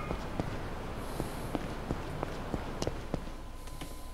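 Quick running footsteps slap on a hard floor.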